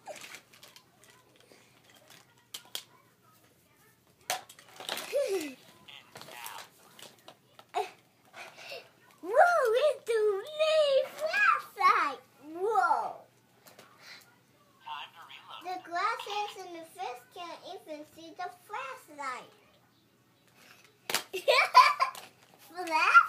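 Plastic toys clatter and rustle as they are handled.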